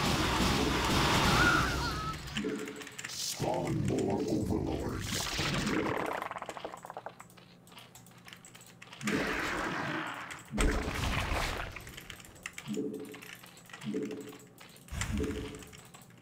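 Game sound effects chirp and click.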